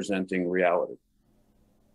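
A man speaks briefly and calmly over an online call.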